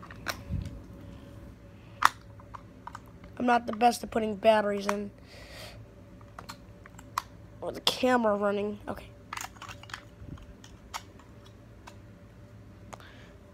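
Plastic clicks and taps as a game controller is handled.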